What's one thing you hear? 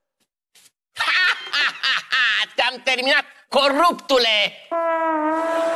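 A man shouts excitedly.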